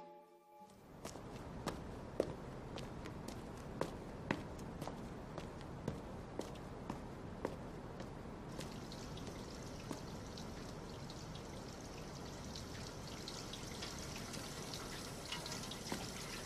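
Footsteps tread steadily on pavement outdoors.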